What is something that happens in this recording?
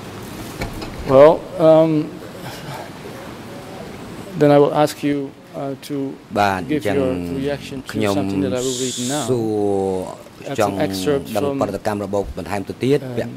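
A middle-aged man speaks steadily into a microphone.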